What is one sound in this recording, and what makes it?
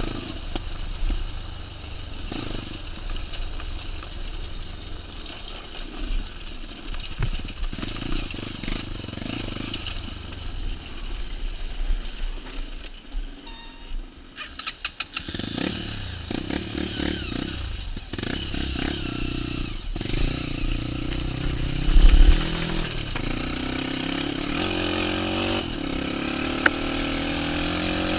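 A dirt bike engine hums and revs up and down.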